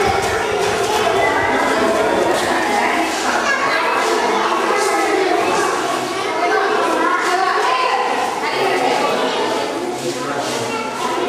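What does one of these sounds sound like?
A crowd of women and children chatters loudly nearby, in an echoing room.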